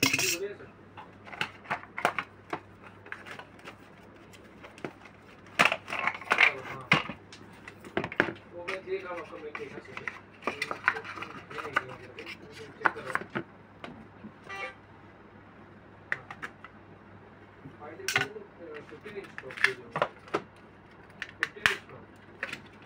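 Cardboard and plastic packaging rustles and clicks as hands open a box.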